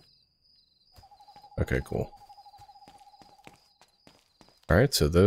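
Footsteps tap steadily on stone.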